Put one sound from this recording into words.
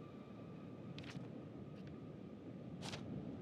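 A sheet of paper rustles briefly.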